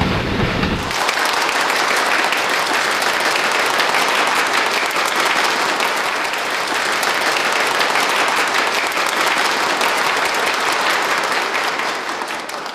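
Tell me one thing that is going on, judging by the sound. A large crowd applauds loudly in a big hall.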